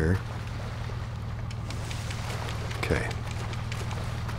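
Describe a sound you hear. Water splashes and churns around a swimmer.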